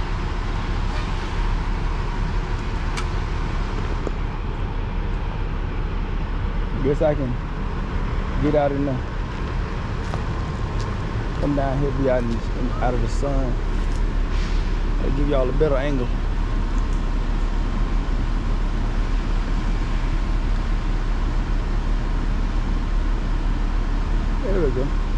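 A crane engine hums steadily at a distance.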